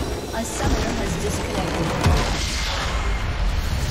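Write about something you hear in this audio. A game's crystal explodes with a deep boom.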